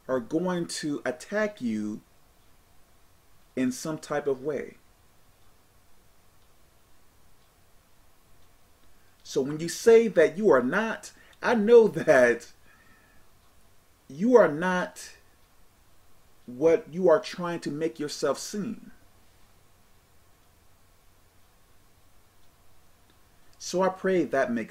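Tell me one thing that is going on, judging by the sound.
A man speaks calmly into a nearby microphone, in short bursts with pauses.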